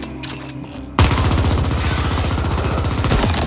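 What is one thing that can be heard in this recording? A gun fires rapidly in a fast, steady stream of shots.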